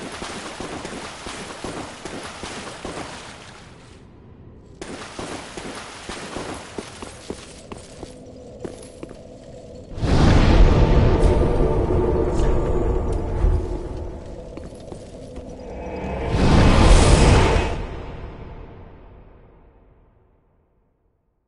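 Heavy armoured footsteps clink and crunch over scattered coins.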